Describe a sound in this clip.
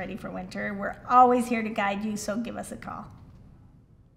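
A woman speaks clearly into a microphone, close by.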